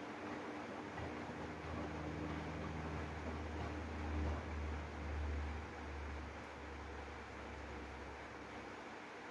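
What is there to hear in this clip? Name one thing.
A washing machine motor drones low and louder for a while.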